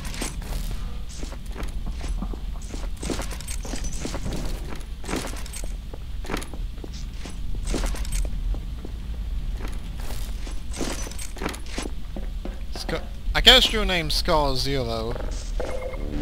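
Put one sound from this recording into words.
Footsteps crunch steadily over snow.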